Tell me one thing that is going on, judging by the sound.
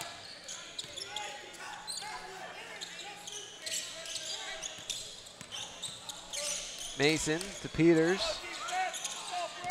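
A basketball bounces on the court with hollow thuds.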